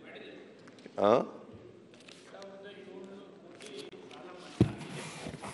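An elderly man speaks into a microphone in a large hall.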